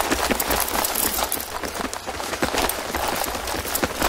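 Footsteps thud as soldiers run close by.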